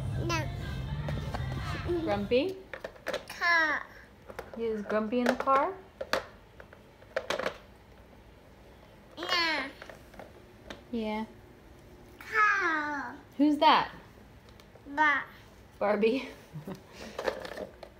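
A toddler babbles and chatters close by in a high voice.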